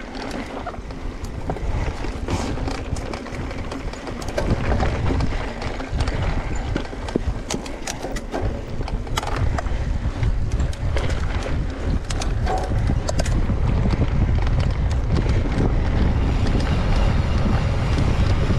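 Wind buffets the microphone of a rider moving at speed.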